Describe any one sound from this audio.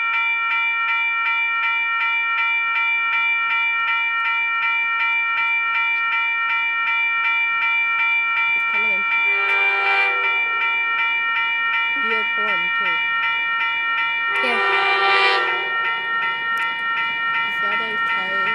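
A railway crossing bell rings rapidly and steadily.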